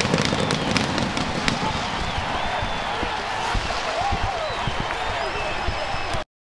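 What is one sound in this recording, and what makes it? Men shout and whoop excitedly.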